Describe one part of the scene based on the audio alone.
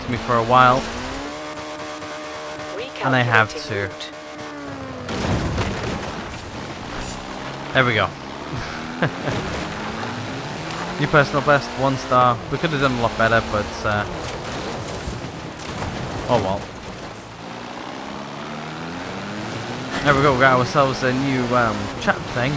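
A car engine revs hard, rising and falling as gears change.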